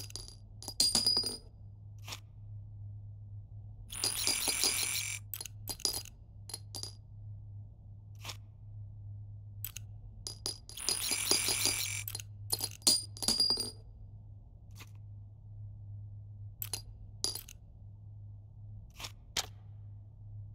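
Metal cartridges and magazines clatter and clink in quick bursts.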